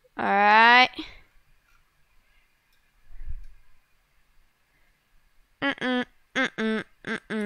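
A young girl speaks with animation into a headset microphone, close up.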